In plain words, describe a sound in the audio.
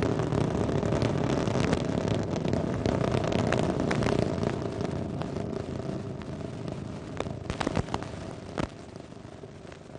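A rocket engine roars and crackles loudly, slowly fading into the distance.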